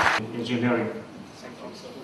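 A man speaks over a loudspeaker in a large hall.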